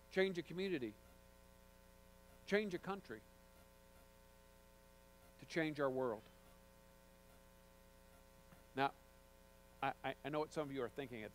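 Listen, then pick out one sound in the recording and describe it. A man speaks calmly through a microphone, with pauses between phrases.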